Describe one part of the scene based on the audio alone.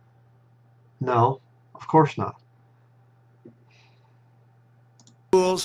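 A man speaks calmly, close to a microphone, in short bursts.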